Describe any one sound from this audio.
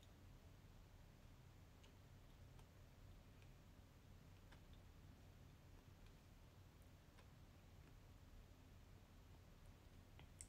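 A young woman chews food softly, close by.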